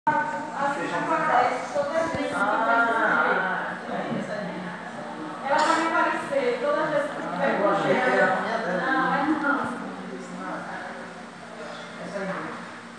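A young woman talks close by in a relaxed tone.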